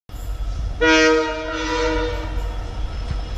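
A train horn blares in the distance.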